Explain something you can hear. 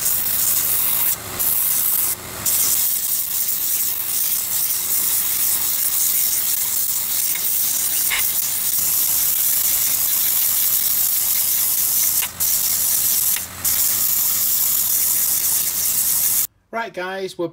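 A belt sander whirs loudly as a metal blade is ground against it.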